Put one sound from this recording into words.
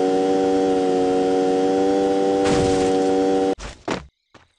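A car engine hums steadily as a car drives over rough ground.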